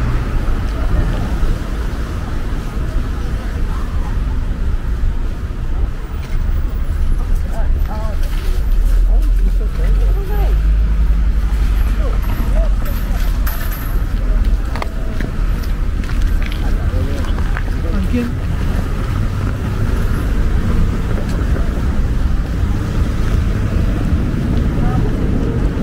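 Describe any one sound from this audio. Traffic rumbles steadily along a nearby street.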